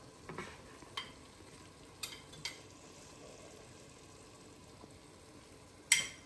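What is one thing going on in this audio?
A bowl knocks and scrapes against a pan.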